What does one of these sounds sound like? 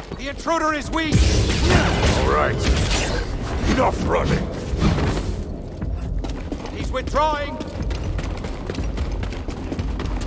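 A lightsaber hums and swings with loud whooshes.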